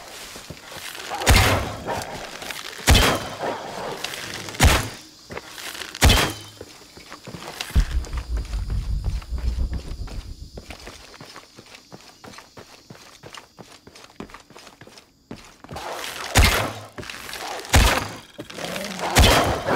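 A bow is released and twangs sharply as arrows fly.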